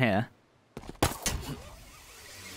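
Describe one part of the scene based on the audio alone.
A heavy blow lands with a sharp thud.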